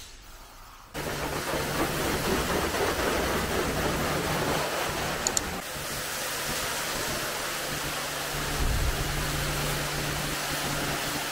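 A pressure washer sprays water with a steady loud hiss.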